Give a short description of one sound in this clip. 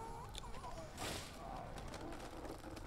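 A loud explosion bursts with a rushing roar.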